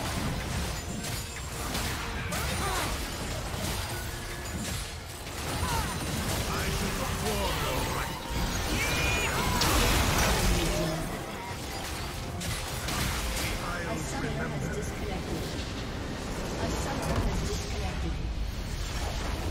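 Spells and weapons whoosh, crackle and explode in a busy fight.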